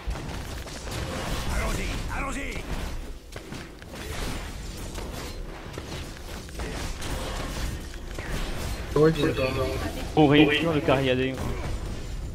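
Magic blasts and hits crackle and thump in a fast game fight.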